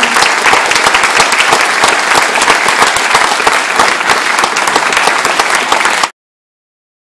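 An audience claps and applauds loudly.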